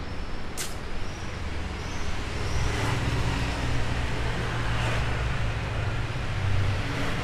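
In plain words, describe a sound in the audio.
Traffic rumbles steadily nearby.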